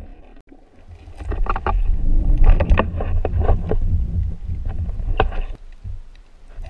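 Water rushes and bubbles loudly underwater.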